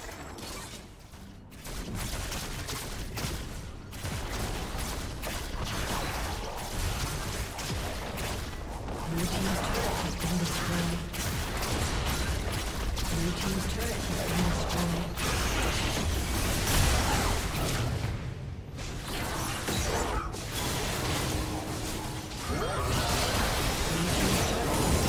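Game spells and weapons clash and blast in a busy battle.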